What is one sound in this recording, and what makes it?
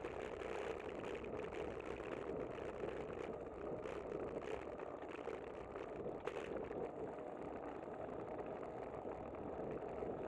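Wind rushes steadily over the microphone.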